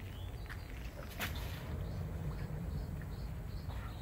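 A man steps down into a rubber dinghy with a soft thump.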